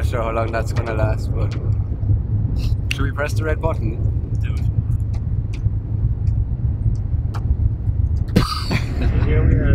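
A vehicle engine rumbles steadily inside a cabin.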